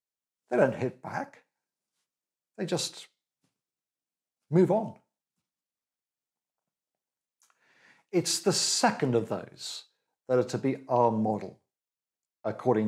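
A middle-aged man speaks calmly and close to a microphone, with pauses.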